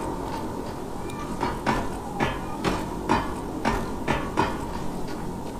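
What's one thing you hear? Hands and feet clank rhythmically on a metal ladder.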